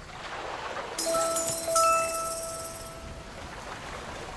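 A bright, sparkling chime rings out and slowly fades.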